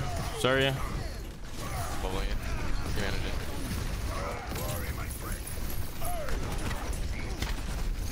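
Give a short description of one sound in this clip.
Energy weapons blast and crackle in a game.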